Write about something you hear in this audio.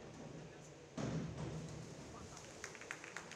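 A diver splashes into the water.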